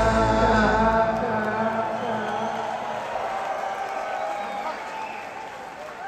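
A rock band's final chord rings out loudly and fades.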